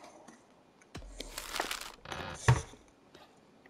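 A wooden chest lid opens with a knock.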